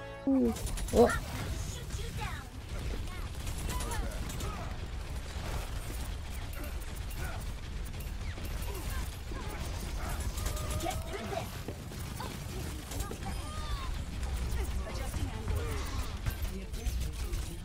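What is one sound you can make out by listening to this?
Rapid game gunfire rattles steadily.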